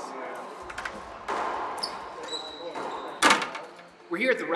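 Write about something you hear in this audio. A racquetball smacks hard against the walls of an echoing court.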